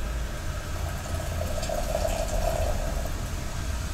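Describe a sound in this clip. Water trickles from a ladle back into a kettle.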